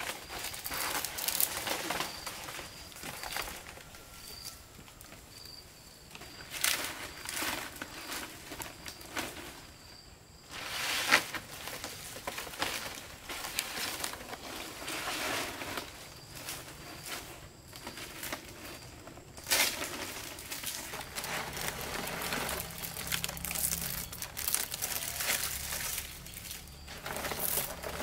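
Dry palm leaves rustle and crackle as they are handled.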